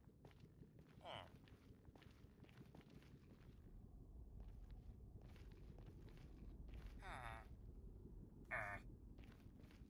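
A creature grunts briefly a few times.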